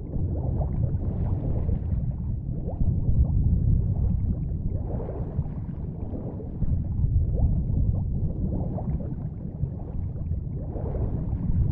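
Wind rushes loudly past a falling figure.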